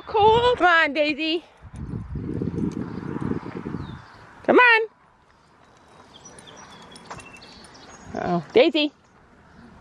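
A dog yelps and whines in high bursts.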